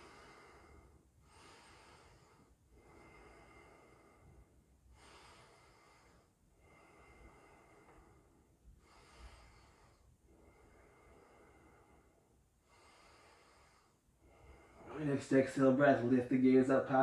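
A man speaks calmly and slowly, close to a microphone.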